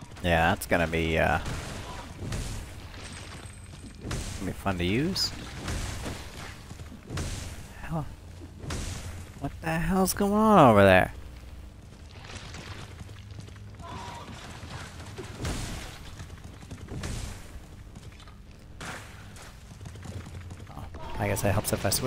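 A laser gun fires short zapping bursts.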